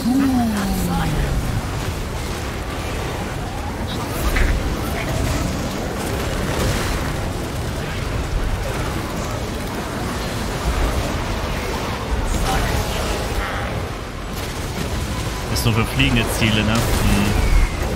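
Magic blasts burst with sharp cracks.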